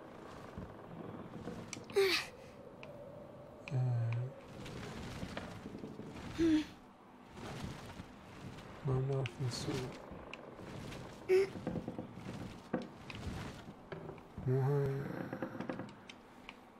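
A heavy wooden crate scrapes and grinds across floorboards.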